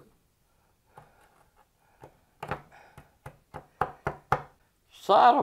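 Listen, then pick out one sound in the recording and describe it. A hand knocks and taps sharply on a wooden table.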